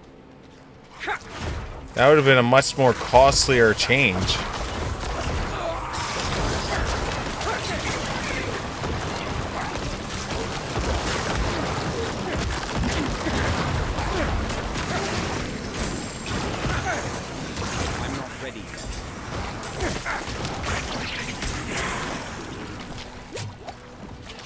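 Video game combat sounds clash and boom with magic blasts.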